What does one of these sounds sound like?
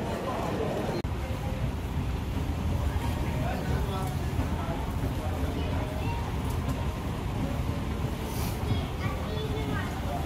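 A moving walkway hums and rumbles steadily.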